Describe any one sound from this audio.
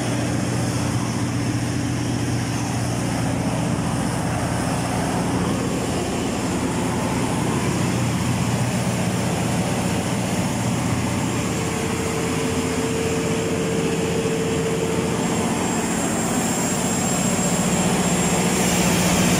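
A large diesel engine drones loudly and steadily nearby.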